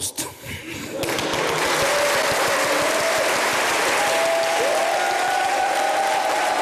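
A large audience applauds in a big echoing hall.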